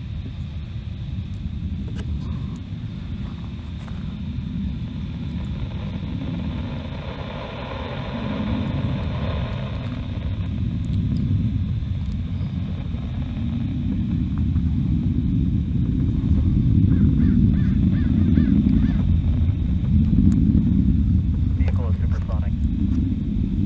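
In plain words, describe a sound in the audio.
A distant rocket roars with a deep, rolling rumble as it climbs.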